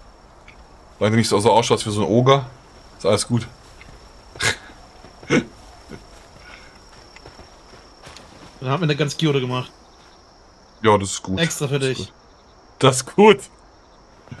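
A middle-aged man talks with animation into a close microphone, in short bursts.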